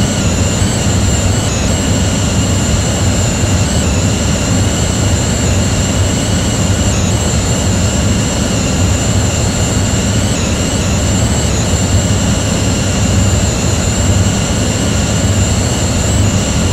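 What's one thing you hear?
Jet engines whine and rumble steadily as an airliner taxis.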